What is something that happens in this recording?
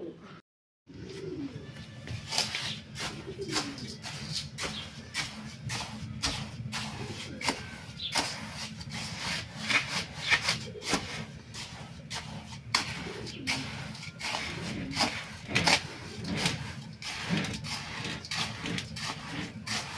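A scraper rasps and scrapes through gritty grains in a metal basin.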